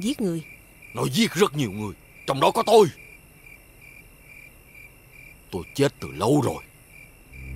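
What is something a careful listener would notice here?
An elderly man speaks gruffly and angrily.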